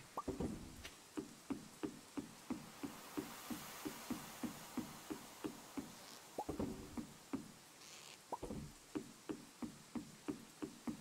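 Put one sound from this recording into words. Footsteps tap on wooden boards at a steady pace.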